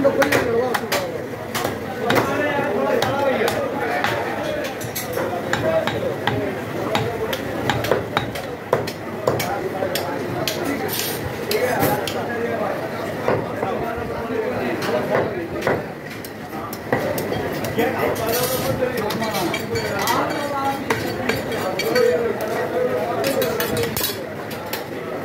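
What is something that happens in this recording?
A cleaver chops meat against a wooden block with sharp, repeated thuds.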